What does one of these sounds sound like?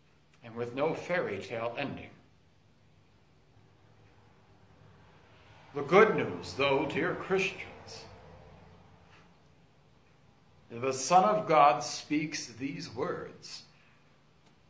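A man speaks slowly and clearly in a large echoing hall, pausing between phrases.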